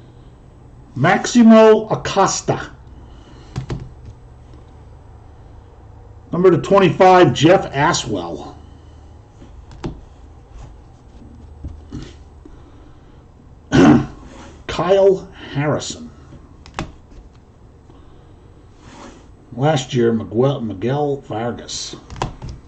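An older man talks calmly and close by, in short bursts.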